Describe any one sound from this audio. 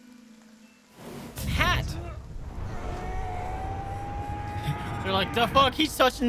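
A deep magical rumble swells and roars.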